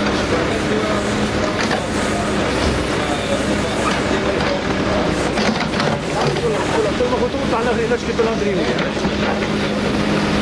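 An excavator bucket scrapes and digs into soil.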